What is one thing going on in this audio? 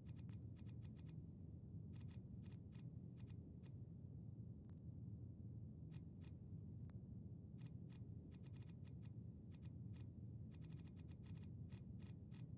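Soft interface ticks click in quick bursts.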